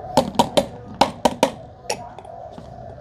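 A plastic container lid clicks and snaps shut several times.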